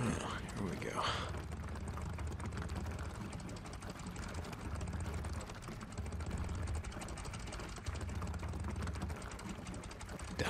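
Fuel gurgles from a pump nozzle into a tank.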